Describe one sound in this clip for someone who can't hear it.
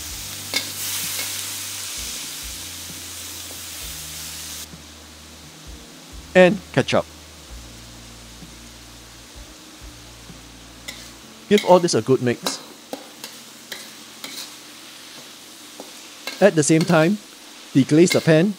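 A metal ladle scrapes and clinks against a wok.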